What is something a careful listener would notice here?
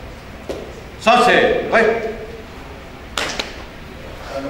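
Several people clap their hands in unison.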